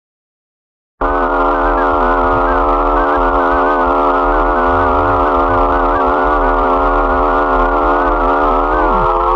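A man lets out a long, steady, distorted scream.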